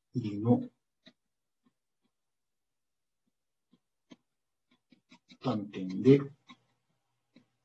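A young man speaks calmly through a microphone, in short bursts.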